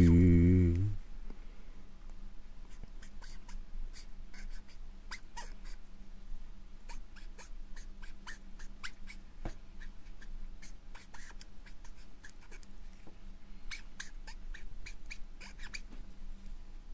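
A pen nib scratches and taps softly on paper.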